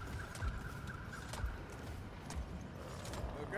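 Heavy footsteps thud slowly on stone.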